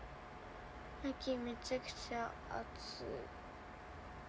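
A young girl speaks briefly, close to a phone microphone.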